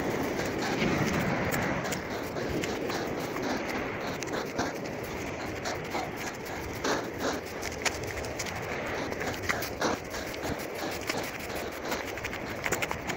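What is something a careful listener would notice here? Grass rustles in the wind.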